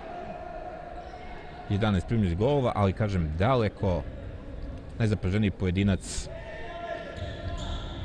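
Players' shoes squeak and patter on a hard court in a large echoing hall.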